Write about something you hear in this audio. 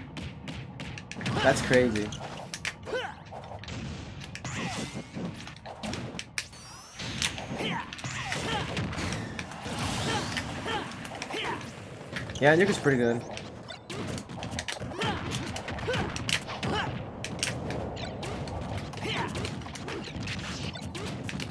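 Fighting game hits and impacts thud and crack in quick bursts.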